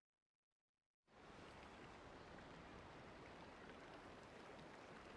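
A waterfall splashes and rushes steadily.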